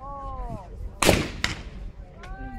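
A shotgun fires twice in quick succession outdoors.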